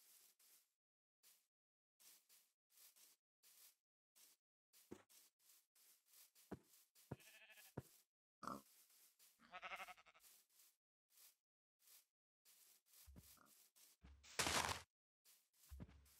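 Footsteps thud softly on grass at a steady walking pace.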